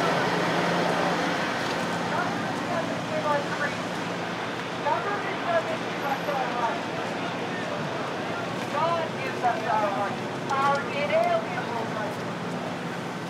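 A crowd murmurs outdoors nearby.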